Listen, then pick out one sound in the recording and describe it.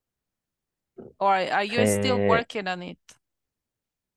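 An adult speaks briefly over an online call.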